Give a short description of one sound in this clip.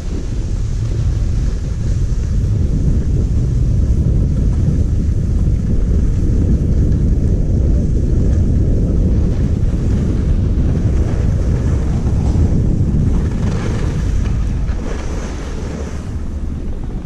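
Wind rushes loudly past while skiing downhill.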